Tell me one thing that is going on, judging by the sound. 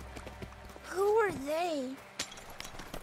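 A boy speaks in a high voice.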